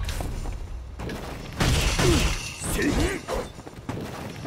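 Punches and kicks land with heavy thuds in a fighting game.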